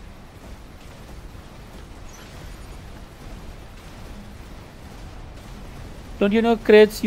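A giant robot walks with heavy, thudding footsteps.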